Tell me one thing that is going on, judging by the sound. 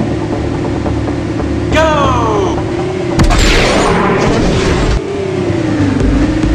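A racing car engine hums and revs up.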